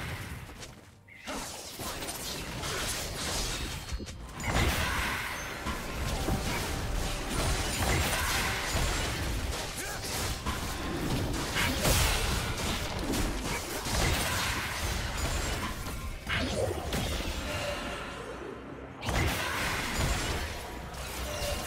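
Magical blasts whoosh and crackle during a video game battle.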